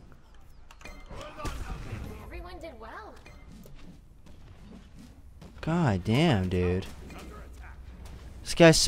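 Game sounds of weapons striking and spells bursting play.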